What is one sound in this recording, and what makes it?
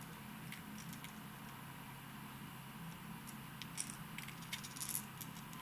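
Plastic fishing lures click and rattle faintly as they are handled.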